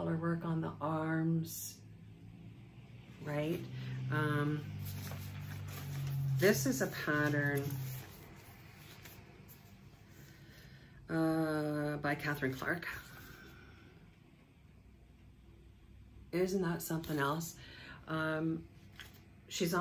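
Paper pages rustle and flap.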